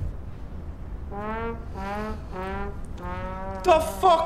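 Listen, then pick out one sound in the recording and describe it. A trombone plays a short, drooping tune.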